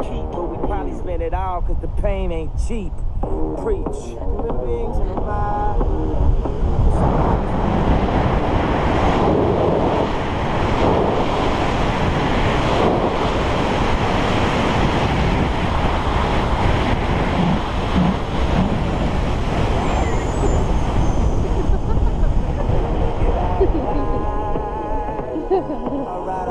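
A young woman laughs and shrieks with excitement close by.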